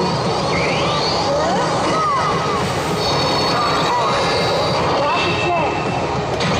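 A slot machine plays bright electronic jingles and chimes.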